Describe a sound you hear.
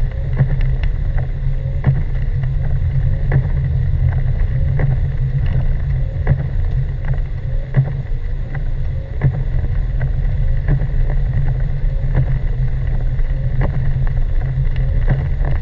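Wet snow and rain patter on a windshield.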